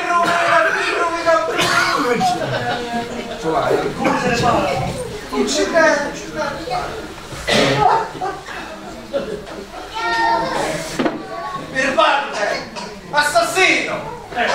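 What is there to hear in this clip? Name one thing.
A man speaks from a stage, in an echoing hall.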